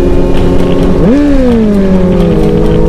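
A motorcycle engine revs up sharply, then settles.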